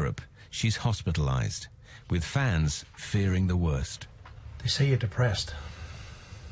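A man reads aloud calmly and closely.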